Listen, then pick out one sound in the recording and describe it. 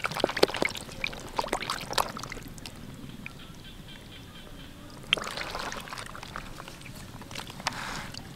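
Wet fish thrash and splash in a plastic tub.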